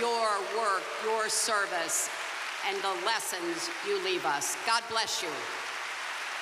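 A middle-aged woman speaks with feeling through a microphone in a large echoing hall.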